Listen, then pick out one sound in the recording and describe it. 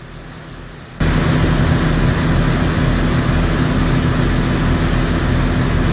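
A truck engine rumbles loudly, heard from inside the cab.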